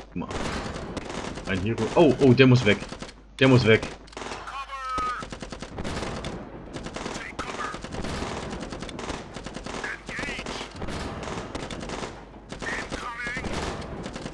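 Explosions boom repeatedly.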